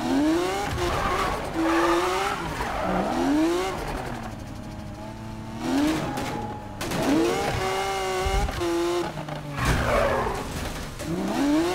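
Tyres screech on a wet road as a car drifts.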